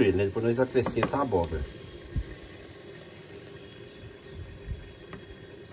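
Chopped tomatoes tumble wetly into a metal pot.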